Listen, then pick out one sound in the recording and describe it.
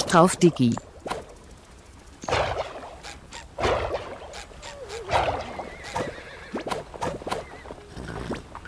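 Light cartoonish footsteps patter quickly.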